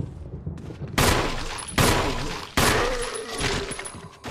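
Gunshots ring out loudly with echoes.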